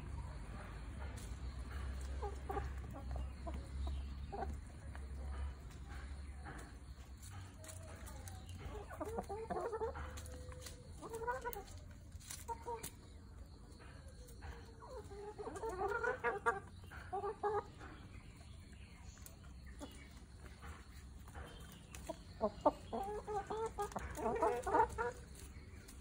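Chickens scratch and peck at dry ground.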